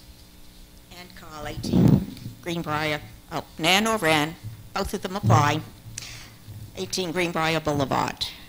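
A woman speaks steadily into a microphone.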